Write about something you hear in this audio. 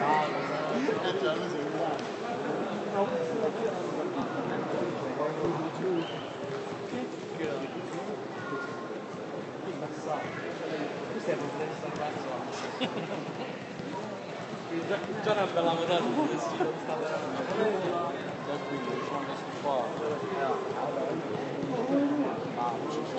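Spectators chatter and call out nearby in an open-air stadium.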